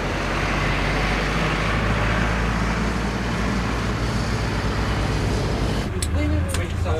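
A bus drives past on an open road.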